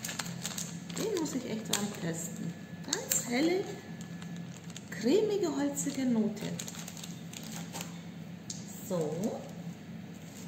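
A woman speaks calmly and close by.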